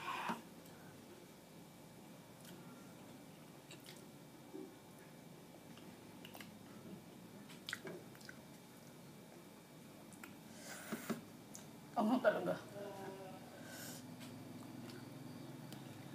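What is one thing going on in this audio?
A young woman chews food with soft smacking sounds.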